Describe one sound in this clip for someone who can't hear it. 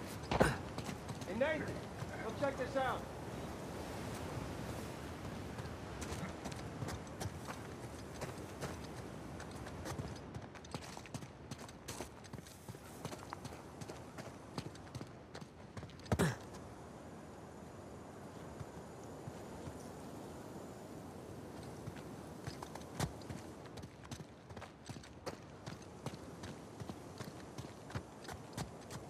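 Footsteps tread steadily over stone and gravel.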